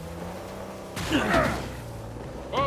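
A man shouts urgently.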